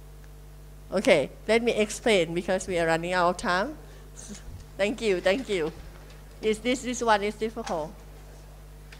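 A young woman speaks with animation through a handheld microphone.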